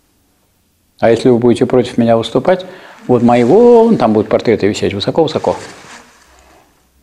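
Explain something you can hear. An elderly man speaks loudly and clearly in a room with a slight echo.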